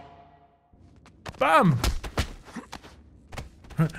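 Men scuffle and blows thud in a fight.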